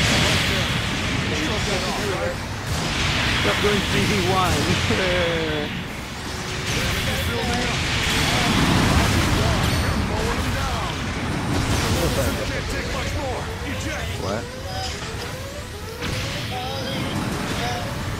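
Beam guns fire in rapid bursts.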